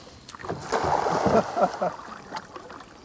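A cast net splashes onto the water.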